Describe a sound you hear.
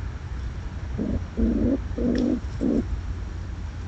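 A squirrel scrabbles and sniffs right beside the microphone in short bursts.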